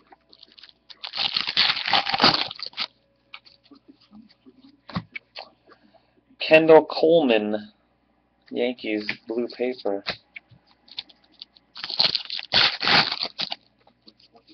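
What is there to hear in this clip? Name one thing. Plastic card sleeves crinkle and rustle in hands.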